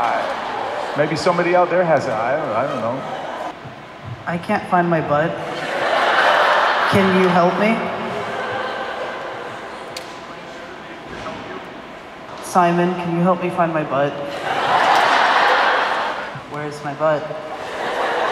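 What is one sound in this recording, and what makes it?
A young man speaks hesitantly into a microphone in a large echoing hall.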